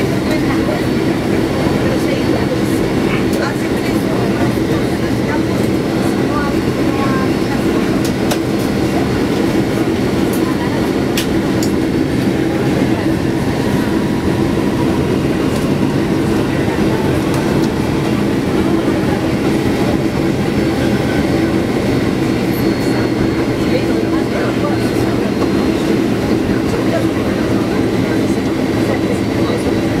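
A jet engine roars steadily, heard from inside an airliner cabin.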